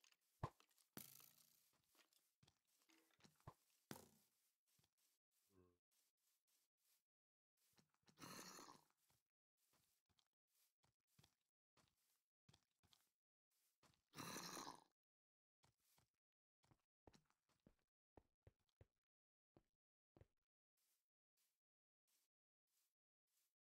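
Footsteps crunch steadily on soft ground in a game.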